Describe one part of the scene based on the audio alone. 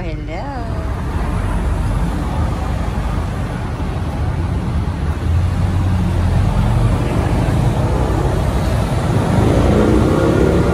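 A car drives along a road with a steady, growing rumble of tyres and engine.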